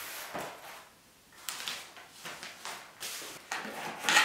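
Paper rustles as it is pulled from a box.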